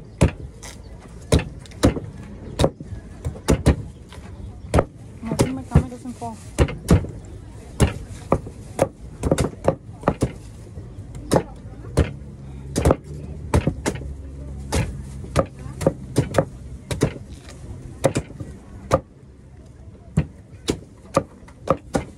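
Machetes chop into coconuts with sharp, rapid thwacks.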